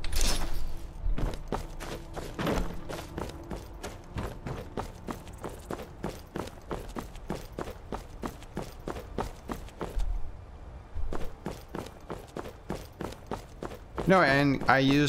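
Footsteps tread steadily on stone and wooden boards.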